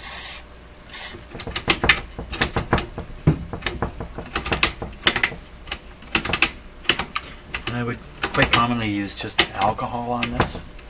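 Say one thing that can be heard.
A switch clicks repeatedly.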